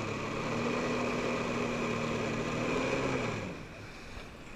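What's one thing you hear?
An engine drones steadily, then winds down and stops.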